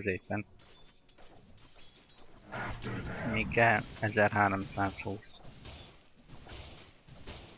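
Magic spells whoosh and crackle in a fantasy battle game.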